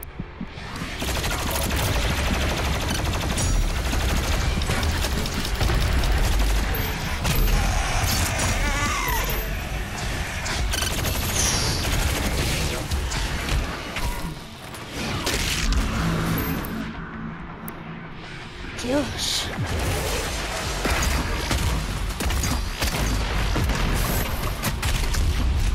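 Heavy gunfire blasts rapidly and loudly.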